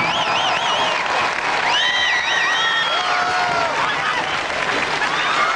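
A rock band plays loudly in a large venue.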